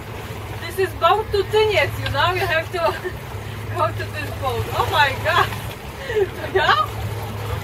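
A man calls out from a short distance.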